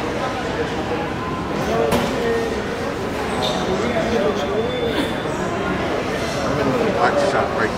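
Cymbals and drums are struck.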